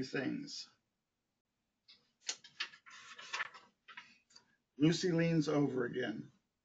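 A middle-aged man reads aloud calmly, close by.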